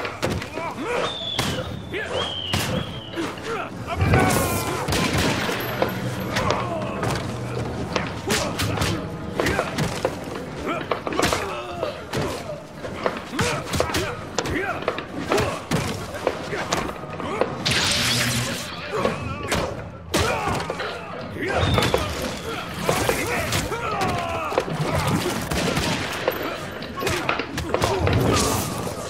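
Punches and kicks land with heavy, rapid thuds.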